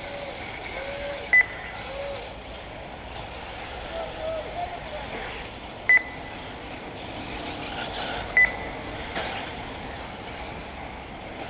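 Small electric model cars whine as they race around a track.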